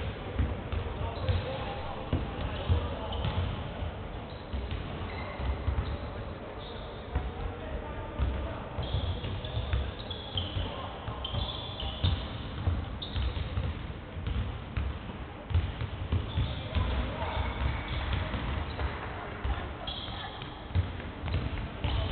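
Basketballs bounce on a wooden court in a large echoing hall.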